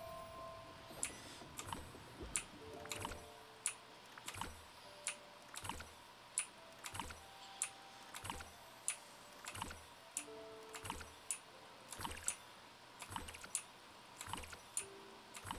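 Video game sound effects thump and chime in a quick, repeating rhythm.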